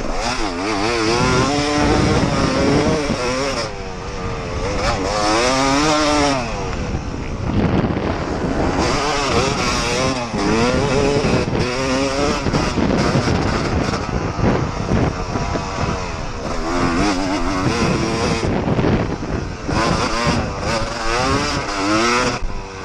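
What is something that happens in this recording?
A dirt bike engine revs hard, rising and falling in pitch as the rider shifts gears.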